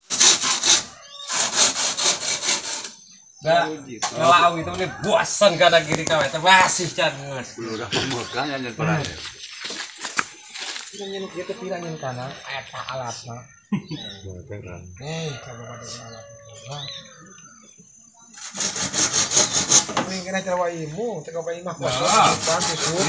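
A tool scrapes bamboo in quick, rhythmic strokes.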